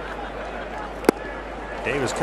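A bat cracks sharply against a baseball.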